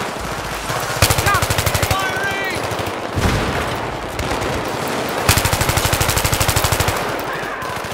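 A rifle fires rapid bursts of automatic shots close by.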